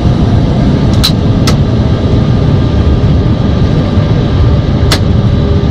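Switches click in a cockpit.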